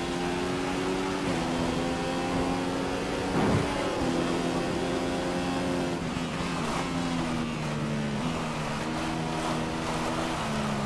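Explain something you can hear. A racing car engine whines at high revs, shifting gears up and down.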